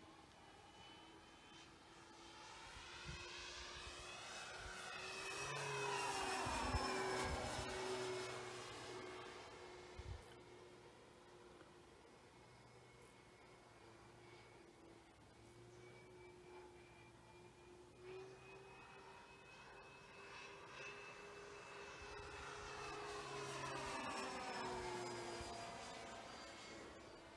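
A propeller plane's engines drone overhead, swelling as it passes close and fading as it flies off, then returning.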